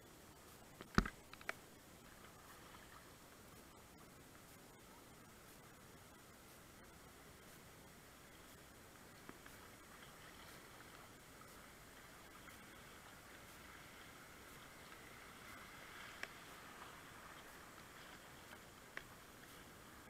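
A paddle splashes into the water with sharp knocks.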